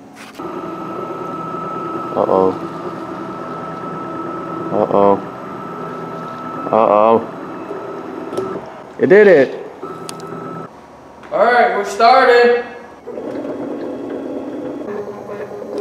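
A motorised plotter whirs steadily as its pen moves.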